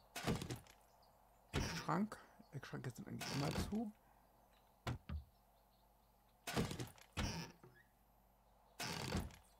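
A wooden cabinet door creaks open.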